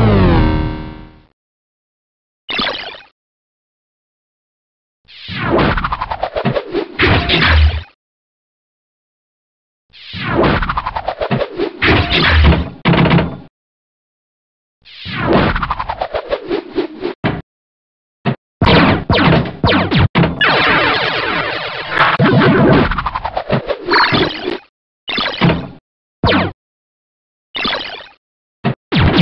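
Electronic pinball sound effects chime and sweep downward in bursts.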